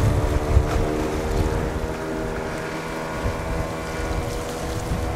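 A large ship's engine hums steadily across the water.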